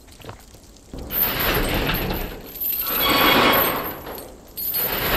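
A metal chain rattles and clanks as it is pulled.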